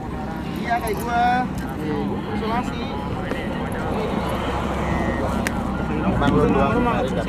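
Several young men talk and chatter close by.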